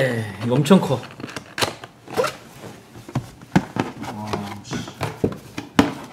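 Cardboard flaps and packing rustle and knock as a box is opened.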